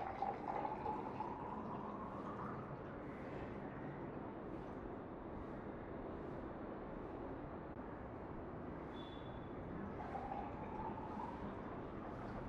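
Water pours into a glass, the splashing rising in pitch as it fills.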